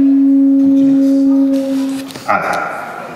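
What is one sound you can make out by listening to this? A tube gives a steady humming tone.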